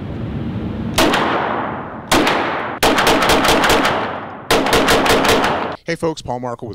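A pistol fires rapid shots that echo in an indoor range.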